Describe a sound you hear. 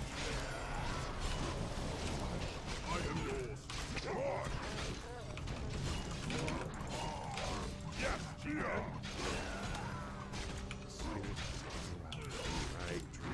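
Swords clash and spells burst in a game battle.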